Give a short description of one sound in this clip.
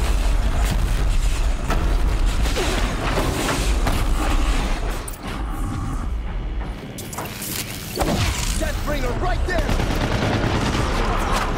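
A giant machine's metal limbs clank and thud.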